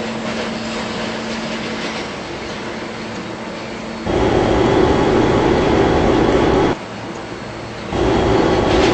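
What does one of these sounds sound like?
A subway train rumbles along the tracks.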